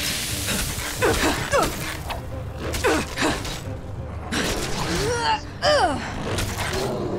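A large beast roars and growls in bursts.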